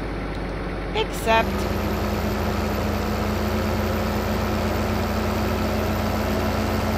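A tractor engine rumbles steadily, rising slightly as it starts to move.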